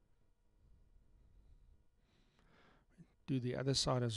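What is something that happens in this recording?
Pliers click shut on a bowstring.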